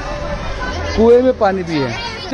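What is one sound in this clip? Young boys talk loudly close by, outdoors.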